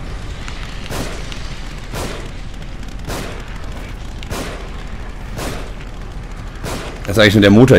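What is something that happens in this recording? Gunshots fire in quick single shots.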